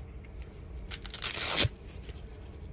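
A hook-and-loop strap rips open.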